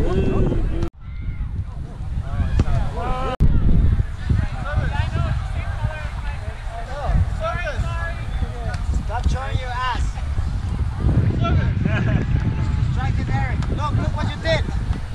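Young adults call out and shout to each other at a distance outdoors.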